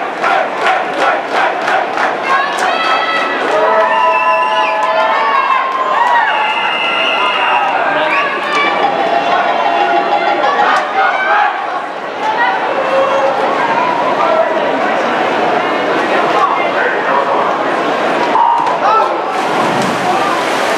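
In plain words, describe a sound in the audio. A crowd of spectators chatters and calls out in an echoing indoor pool hall.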